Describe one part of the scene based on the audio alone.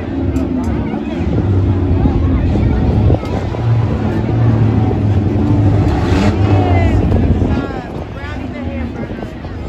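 Car engines rumble and roar loudly in an arena.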